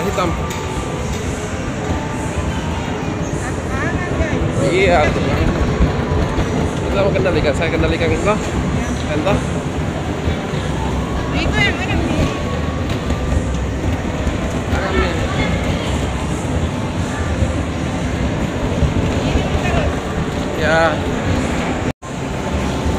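A bumper car's electric motor whirs as it rolls.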